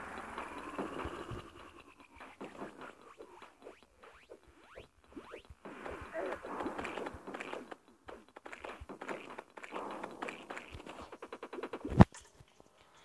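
Electronic game hits click and thud rapidly.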